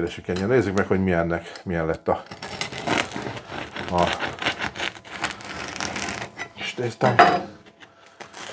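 A bread knife saws through a crusty loaf with a crackling rasp.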